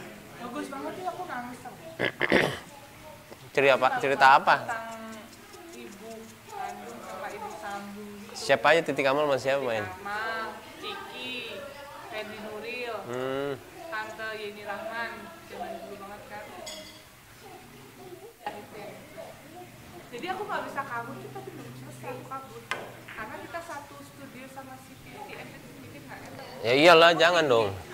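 Men talk and chat nearby.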